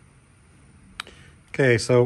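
A button clicks on a small handheld device.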